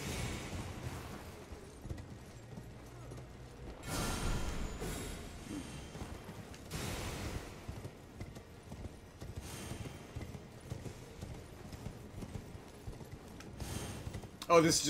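Horse hooves thud along a stone path.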